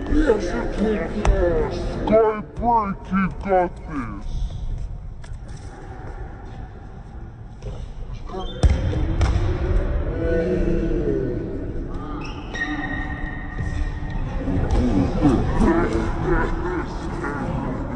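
Men shout and call out across a large echoing hall.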